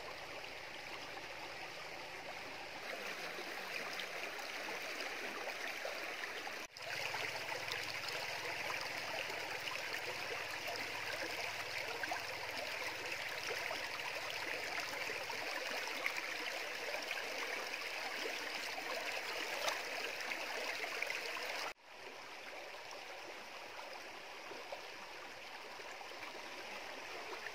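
Water in a shallow stream ripples and babbles over stones.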